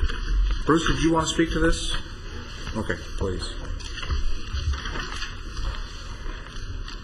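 A man speaks into a microphone at a podium, heard through a loudspeaker in a large room.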